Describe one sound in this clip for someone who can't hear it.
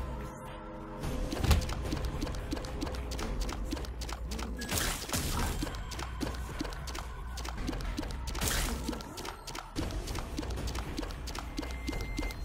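Rapid video game shots pop over and over.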